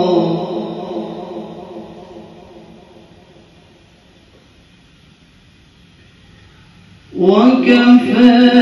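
A young man chants in a long, melodic voice through a microphone, with a ringing echo.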